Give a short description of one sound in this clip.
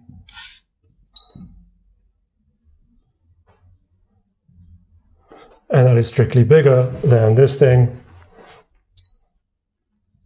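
A marker squeaks in short strokes on a glass board.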